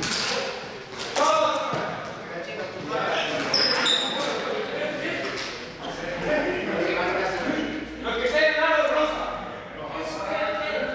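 Young people chatter and call out in a large echoing hall.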